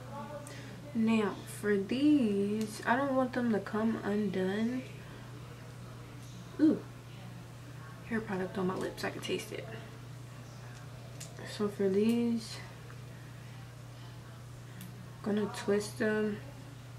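A young woman talks calmly and close by, in bursts with pauses.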